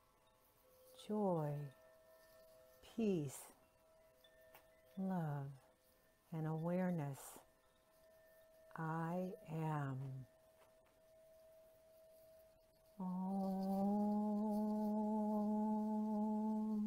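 An older woman sings short sliding vocal tones close to the microphone, then holds a long steady note.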